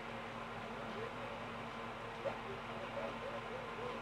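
Chirpy babbling game dialogue sounds play through a television speaker.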